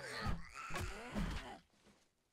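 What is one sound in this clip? A spiked club thuds heavily into a body.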